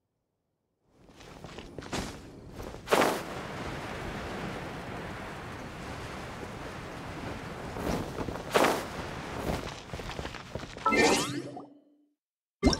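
Wind rushes past steadily.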